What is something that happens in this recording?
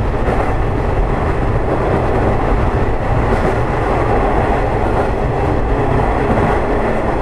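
A train rumbles steadily along the rails through an echoing tunnel.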